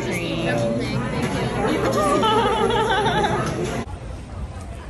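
A crowd of people chatter loudly close by.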